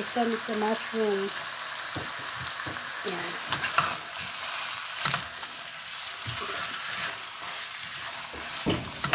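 Food sizzles steadily in a frying pan.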